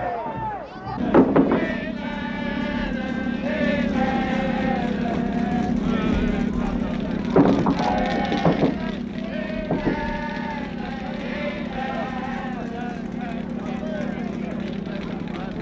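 A brass band plays a lively tune.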